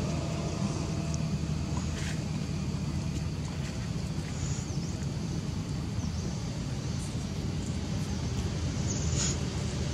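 Cloth rustles softly as a small monkey shifts in a wrap.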